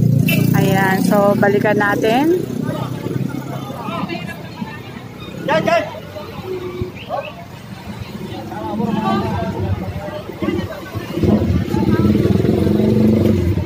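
Several people talk and call out in a busy street.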